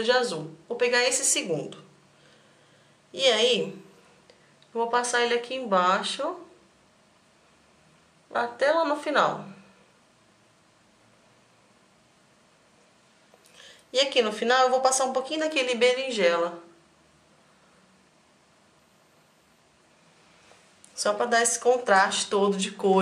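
A young woman talks calmly and close to a microphone, in short bursts with pauses.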